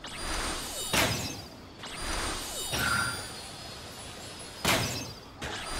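A bow fires arrows with sharp twangs.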